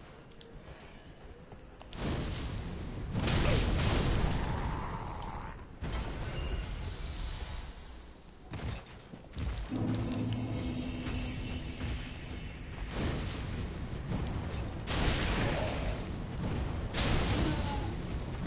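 Footsteps scrape on stone as a warrior runs.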